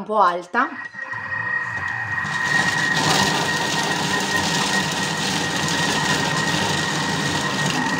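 A motor whirs steadily.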